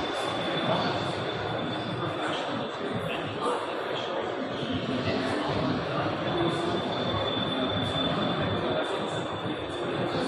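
A crowd of people chatter in the background of a large hall.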